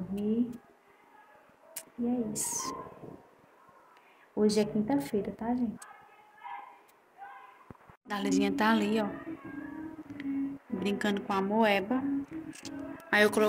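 A young woman talks casually and close by, in bursts with pauses.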